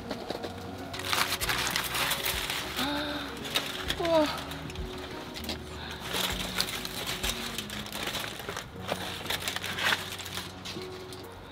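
Aluminium foil crinkles and rustles as hands peel it back.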